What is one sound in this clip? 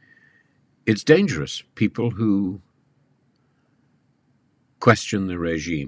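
An elderly man speaks calmly and close into a microphone.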